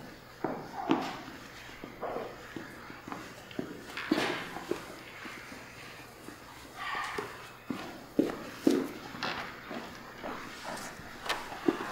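Footsteps thud on a wooden stage floor.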